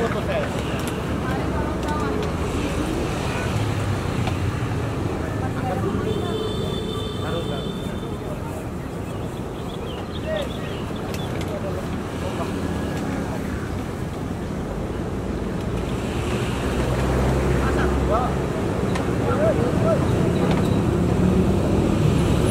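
A crowd murmurs and chatters in the distance outdoors.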